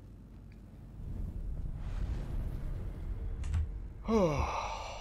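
A low magical rumble swells with a soft shimmering hiss.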